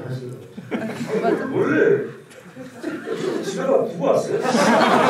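An older man talks with animation into a microphone.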